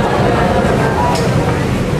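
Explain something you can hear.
A middle-aged man speaks through a microphone over loudspeakers.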